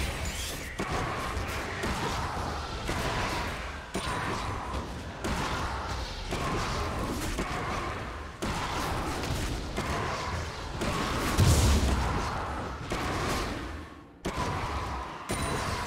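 Video game combat effects whoosh and clash in rapid bursts.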